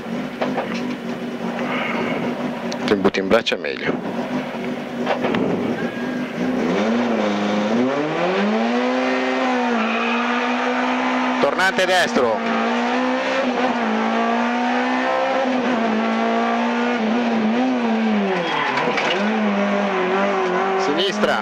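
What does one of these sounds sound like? A car engine revs hard from inside the cabin, rising and falling in pitch.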